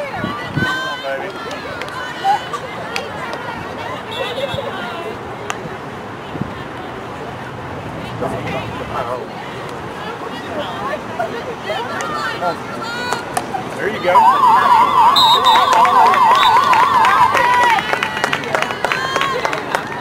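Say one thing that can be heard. Young women call out to each other across an open outdoor field.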